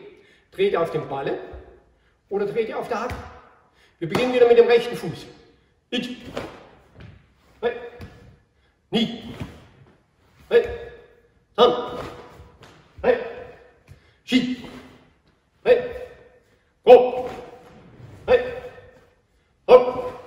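A man calls out short words loudly, with a ringing echo as in a large hall.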